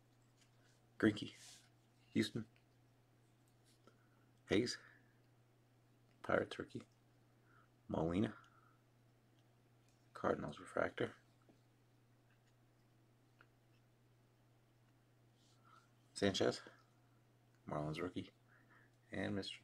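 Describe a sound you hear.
Glossy trading cards slide and rustle against each other in short bursts.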